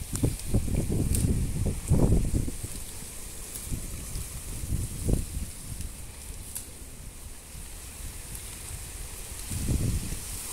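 Leafy plants rustle as hands pull through them.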